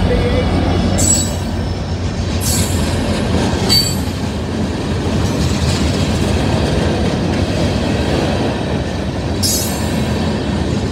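Train wheels clank and squeal over the rail joints.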